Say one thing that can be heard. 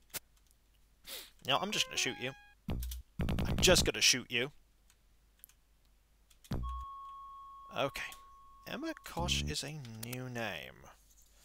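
Electronic game sounds chirp, warble and beep in short bursts.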